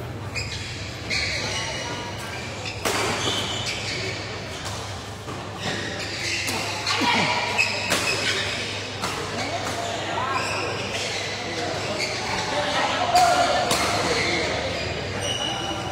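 Shoes squeak and thump on a hard court floor.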